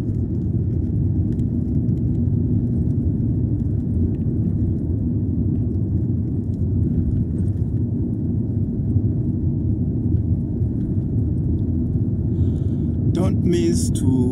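A car engine hums steadily from inside the car.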